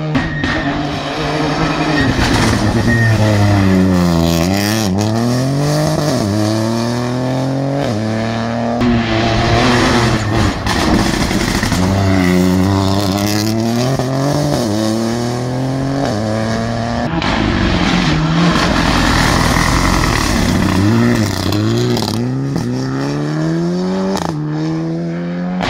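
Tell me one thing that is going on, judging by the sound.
Rally car engines rev hard out of a hairpin bend, with quick gear changes.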